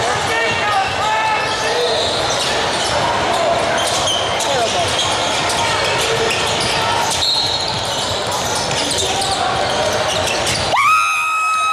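Spectators chatter in a large echoing hall.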